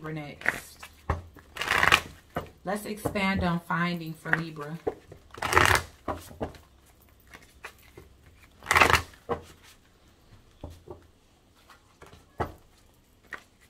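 Playing cards shuffle and riffle close by.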